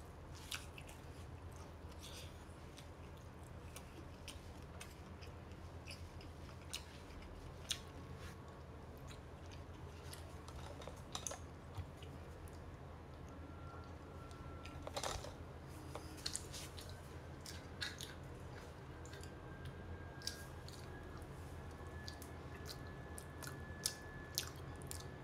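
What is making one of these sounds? A young woman eats with soft smacking sounds close by.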